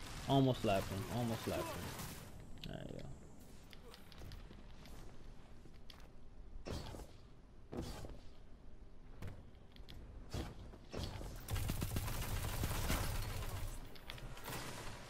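Rapid gunfire blasts in a video game.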